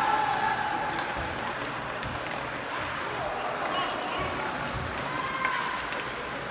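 Hockey sticks click sharply against a puck.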